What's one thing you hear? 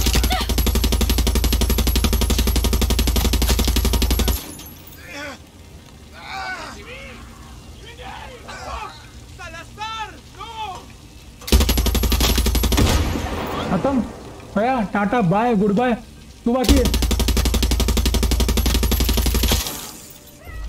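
A heavy machine gun fires in long, rapid bursts.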